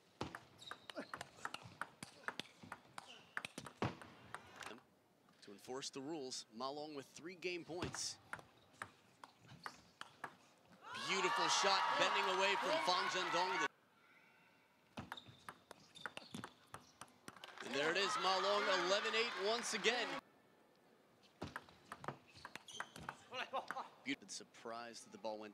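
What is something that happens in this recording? A table tennis ball clicks back and forth in a fast rally.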